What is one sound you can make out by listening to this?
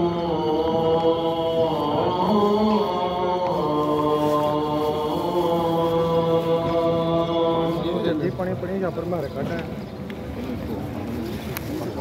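Footsteps shuffle across a hard floor.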